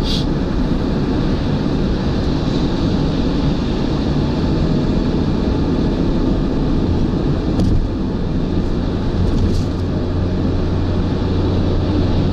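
Trucks rush past close by on the highway.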